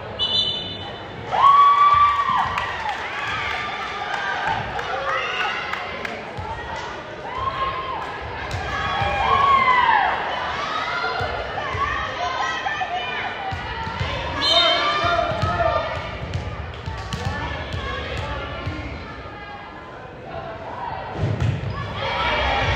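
A crowd of spectators cheers and shouts in a large echoing gym.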